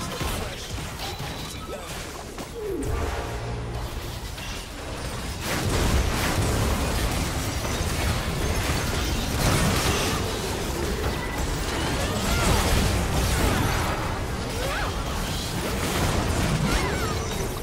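Game spell blasts and weapon hits clash in a busy fight.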